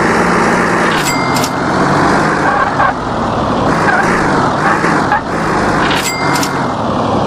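A bright chime rings as coins are collected.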